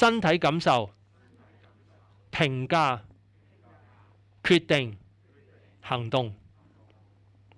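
An elderly man speaks in short bursts with pauses, heard through a microphone.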